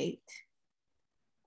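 A young woman speaks briefly over an online call.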